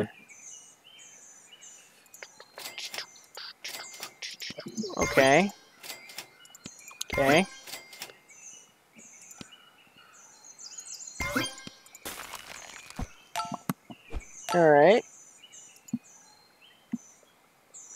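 Short game chimes and pops sound as pieces are placed.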